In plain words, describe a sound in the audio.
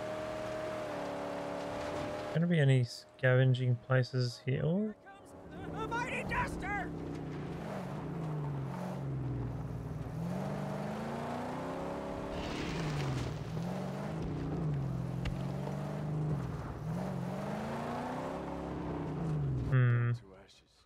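A car engine roars, revving up and down again and again.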